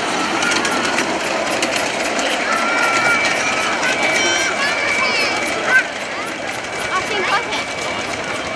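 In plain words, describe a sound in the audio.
Children call out in high voices.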